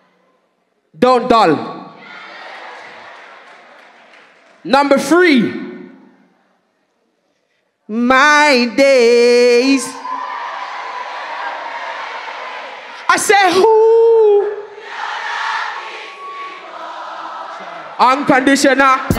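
A man raps loudly into a microphone, heard through loudspeakers in a large echoing room.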